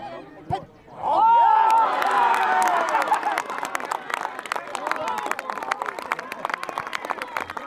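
A crowd cheers and claps loudly outdoors.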